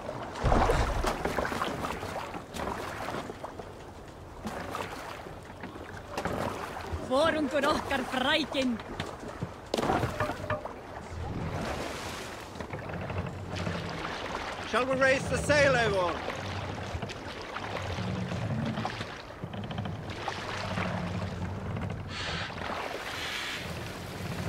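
Water laps and splashes against a wooden boat's hull.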